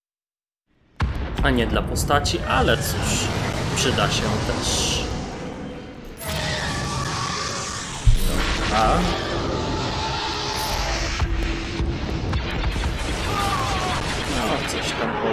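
Starship engines roar in a space battle.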